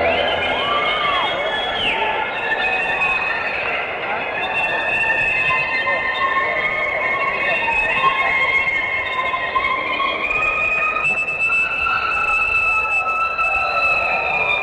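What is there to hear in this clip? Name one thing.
An electric guitar played with a bow wails and drones with a long echo.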